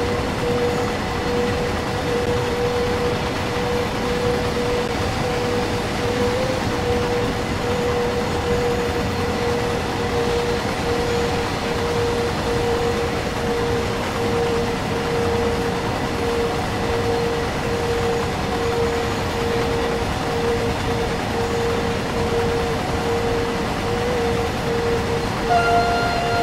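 A train's electric locomotive hums steadily as it rolls along the track.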